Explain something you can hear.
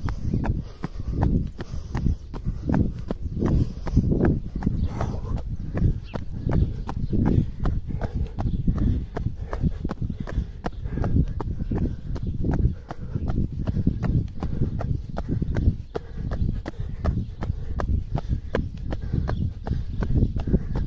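Sneakers slap on concrete as a person runs.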